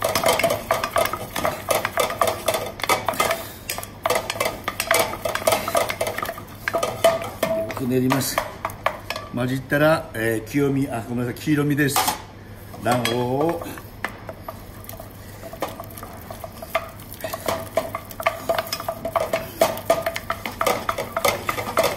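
A wooden spatula scrapes and knocks against a metal pan.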